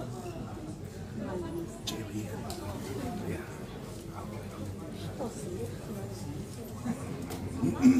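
Musicians tune and warm up their instruments.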